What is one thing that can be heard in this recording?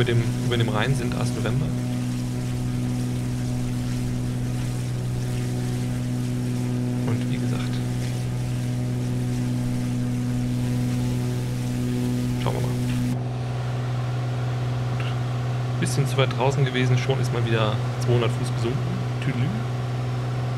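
A man talks through a microphone in short bursts.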